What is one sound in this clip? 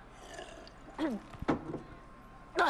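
A man swallows and gulps loudly.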